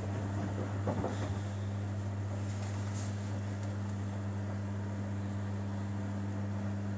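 A front-loading washing machine's motor hums as it turns the drum.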